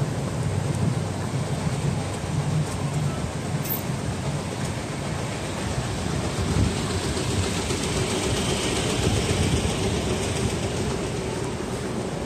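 A diesel city bus idles close by.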